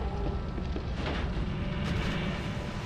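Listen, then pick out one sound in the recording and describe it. A heavy splash sounds in water.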